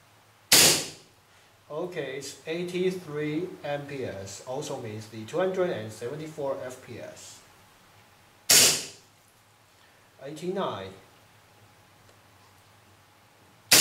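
A pistol fires sharp shots in a small room.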